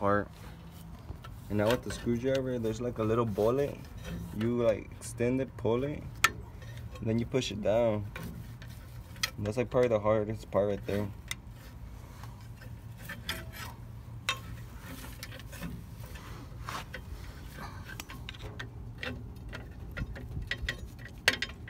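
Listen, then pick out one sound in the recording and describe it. Metal brake parts click and clink as a tool works them.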